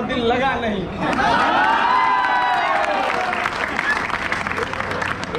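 A crowd of young men shouts together in response.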